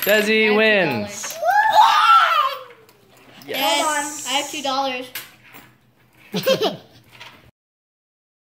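A young boy shouts and laughs excitedly close by.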